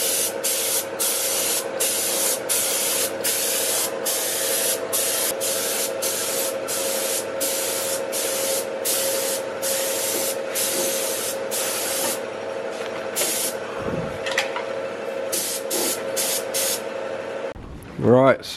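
A spray gun hisses in short, repeated bursts.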